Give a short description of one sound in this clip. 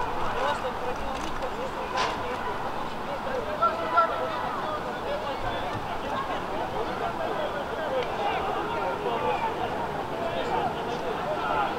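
Young players shout and call to each other across an open outdoor field.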